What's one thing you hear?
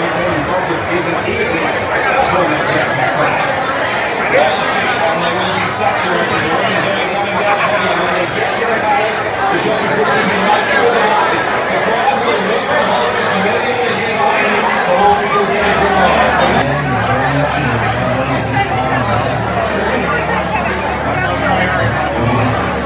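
A large crowd of men and women chatters loudly all around, in a busy, echoing room.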